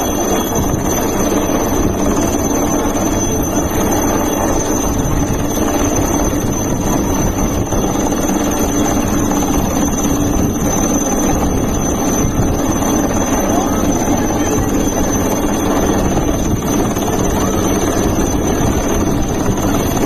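A helicopter's rotor thumps loudly and steadily overhead.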